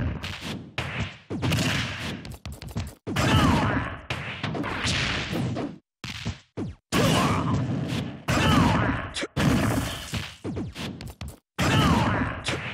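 Heavy punches land with loud thuds and crashes.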